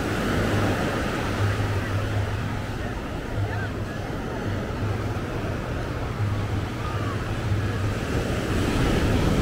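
Small waves wash onto the shore in a steady rush.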